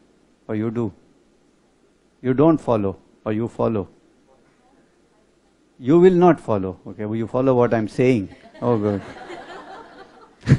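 A middle-aged man speaks calmly into a headset microphone.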